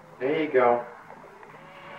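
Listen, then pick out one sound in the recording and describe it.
A young child calls out in a high voice nearby.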